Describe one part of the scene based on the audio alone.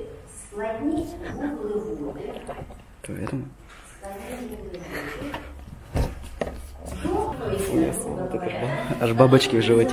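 A young man and a young woman laugh softly.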